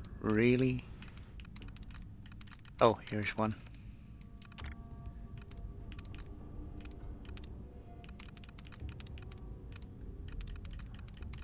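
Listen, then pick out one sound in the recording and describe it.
Soft electronic clicks tick rapidly from a computer terminal.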